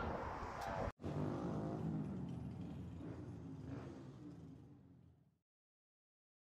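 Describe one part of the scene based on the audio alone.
Traffic passes along a street outdoors.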